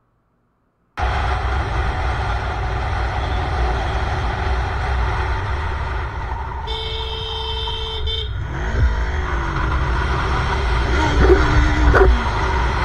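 A motorcycle engine roars steadily while riding.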